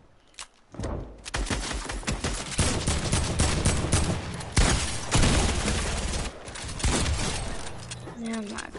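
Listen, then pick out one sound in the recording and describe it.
Gunshots crack in rapid bursts.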